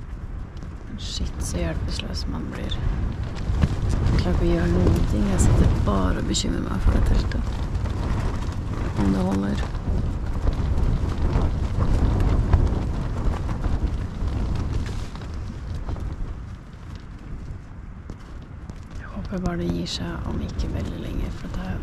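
A woman speaks close by, calmly and with pauses.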